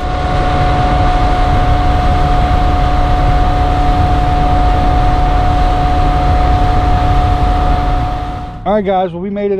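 Water rushes and churns in a boat's wake.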